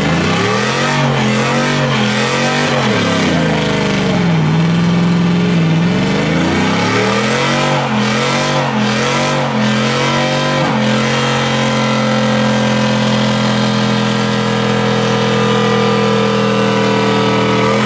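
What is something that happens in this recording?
Truck tyres squeal as they spin on the pavement.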